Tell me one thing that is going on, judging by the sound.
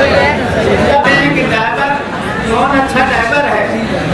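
A middle-aged man speaks through a microphone and loudspeaker.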